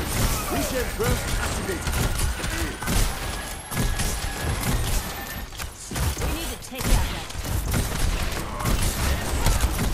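Explosions thud loudly.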